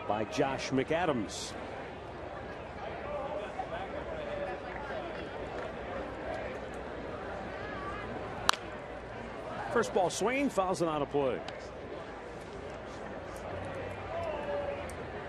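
A crowd murmurs outdoors in the stands.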